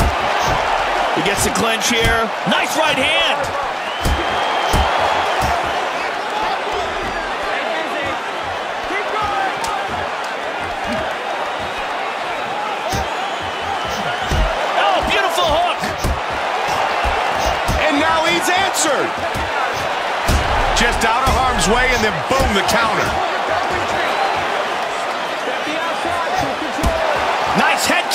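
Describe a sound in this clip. A crowd roars and cheers in a large arena.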